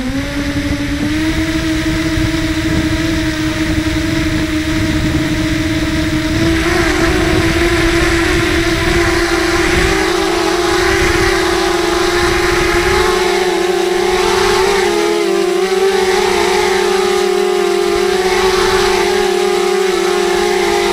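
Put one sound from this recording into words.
A small toy car's electric motor whines steadily, rising in pitch now and then.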